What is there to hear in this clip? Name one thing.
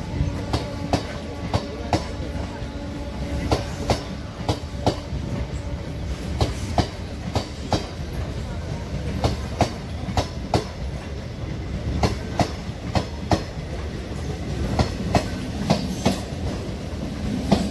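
A passenger train rumbles past close by.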